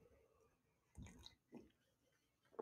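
A man sips a drink from a mug.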